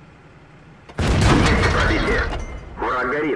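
A tank cannon fires with a loud boom and rumbles away.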